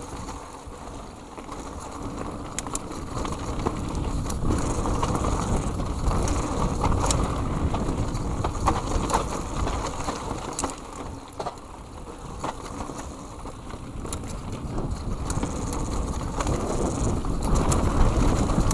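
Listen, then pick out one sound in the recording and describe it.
A bike's frame and chain rattle and clack over bumps.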